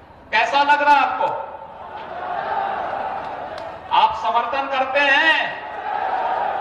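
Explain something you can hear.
A man speaks forcefully into a microphone over loudspeakers outdoors.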